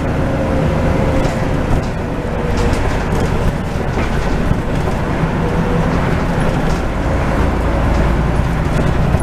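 The bus interior rattles and creaks over the road.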